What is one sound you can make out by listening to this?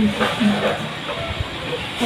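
Hands rummage through cooked fish in a metal pot.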